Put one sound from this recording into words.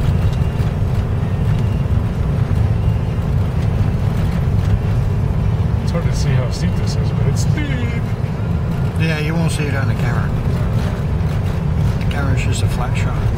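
Tyres crunch over snow on the road.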